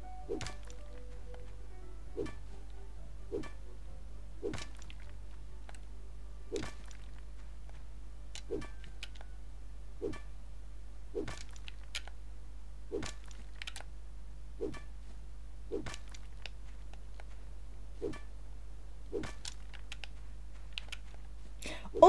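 A pickaxe strikes stone with sharp, regular knocks.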